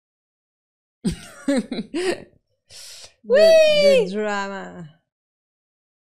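Two women laugh loudly.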